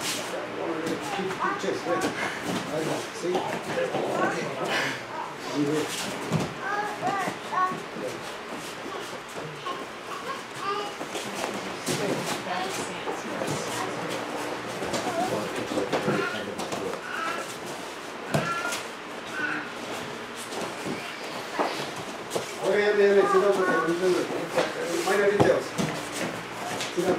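Men talk in a room that echoes.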